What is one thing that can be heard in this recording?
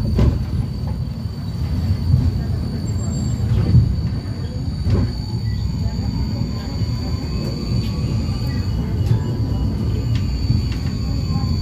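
Tram wheels clack over rail joints.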